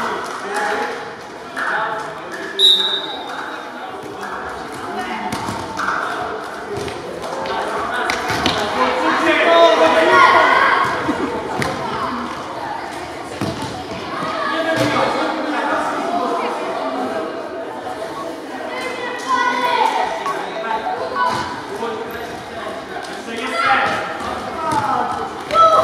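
A ball thuds on a wooden floor as it is kicked.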